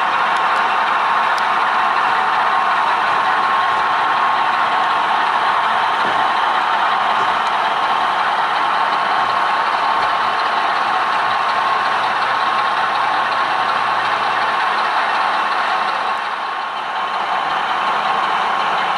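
A small model train hums and whirrs steadily as it runs along the track.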